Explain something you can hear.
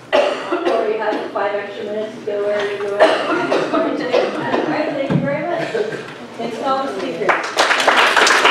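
A woman speaks with animation to a room, slightly distant.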